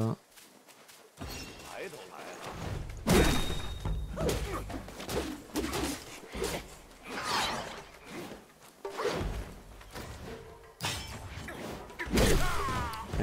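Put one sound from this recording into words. Weapons clash and thud in a sword fight.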